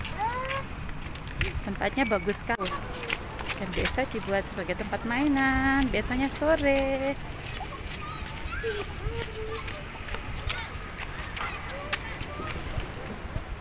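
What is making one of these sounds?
Young girls chatter and call out excitedly outdoors.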